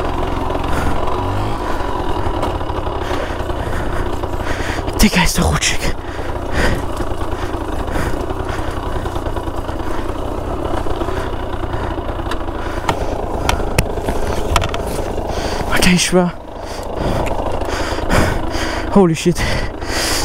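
A motorcycle engine runs and revs up close.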